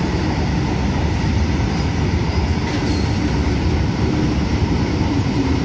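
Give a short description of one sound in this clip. A tractor engine idles with a low chug.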